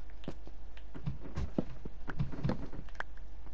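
A wooden block cracks and breaks apart.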